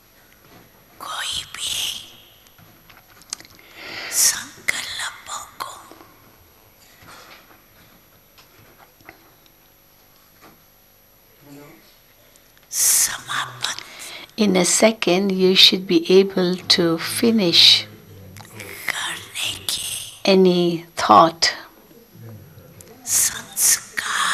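An elderly woman speaks slowly and calmly into a microphone, with pauses.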